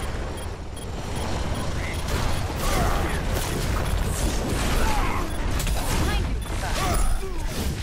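Gunfire from a game weapon blasts in rapid bursts.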